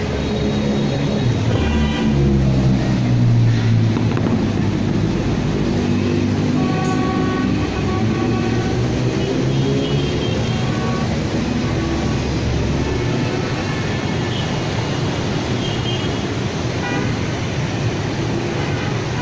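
Heavy traffic of cars and motorbikes rumbles steadily along a busy road.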